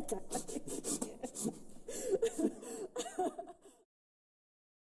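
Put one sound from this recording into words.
A woman sings.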